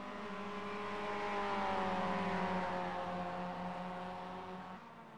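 A four-cylinder race car engine drones past, its pitch slowly falling.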